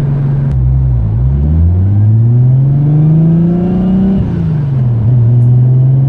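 A car engine revs up slowly, then drops back.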